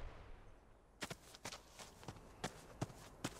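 Footsteps crunch on rough ground.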